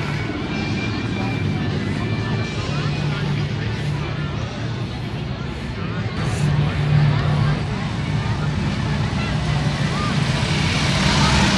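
Motorcycle engines rumble and idle throughout.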